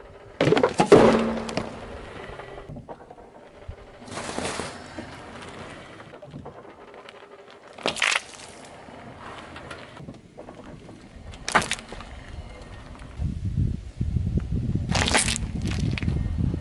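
Car tyres crush and burst small packages with sharp pops and crunches.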